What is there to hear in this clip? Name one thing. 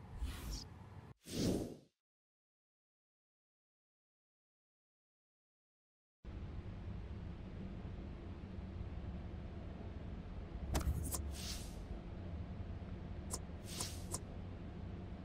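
Short electronic clicks and whooshes sound as a menu opens and changes.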